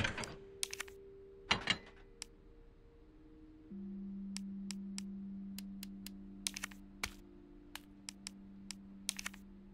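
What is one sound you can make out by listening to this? Short menu clicks and beeps sound one after another.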